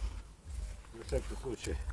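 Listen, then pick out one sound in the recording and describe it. An elderly man speaks briefly nearby.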